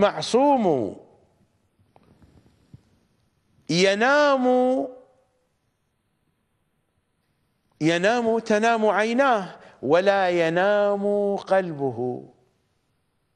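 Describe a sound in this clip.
A middle-aged man speaks with animation into a close microphone, in bursts with pauses.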